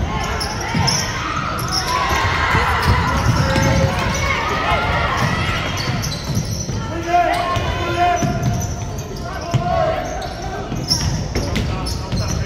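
Spectators shout and cheer from the sidelines.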